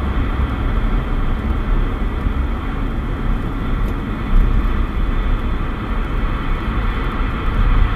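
A radio hisses with steady static.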